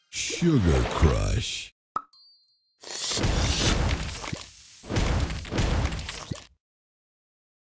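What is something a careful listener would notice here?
Candies pop and burst with bright sparkly game chimes.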